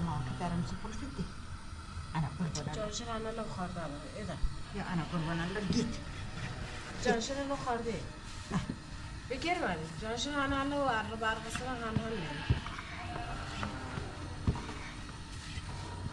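A wooden rolling pin knocks and rolls over dough.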